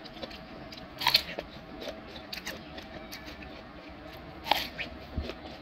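A woman bites into a crisp pear with a crunch, close up.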